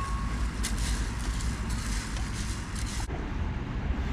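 A spoon stirs and scrapes in a metal pot.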